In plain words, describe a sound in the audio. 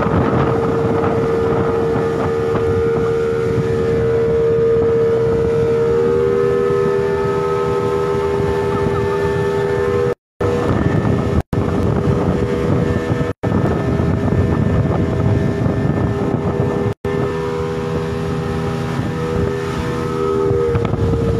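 Water rushes and churns in a boat's wake.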